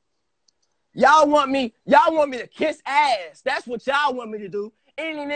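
A young man speaks animatedly close to a phone microphone.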